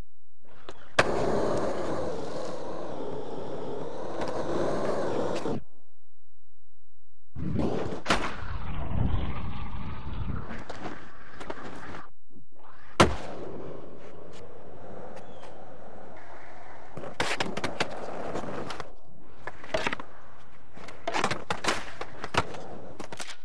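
A skateboard clacks and snaps as it lands tricks.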